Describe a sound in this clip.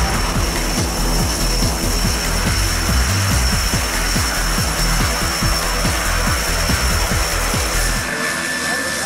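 A twin-propeller plane's engines roar nearby as it taxis closer.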